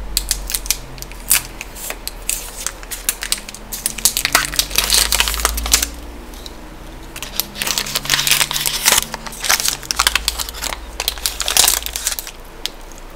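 Foil wrapping crinkles as it is peeled off a chocolate bar.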